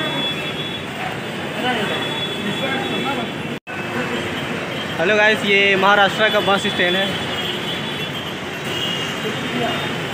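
A crowd chatters outdoors in a steady murmur.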